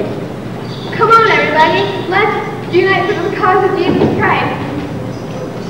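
Children sing together in an echoing hall.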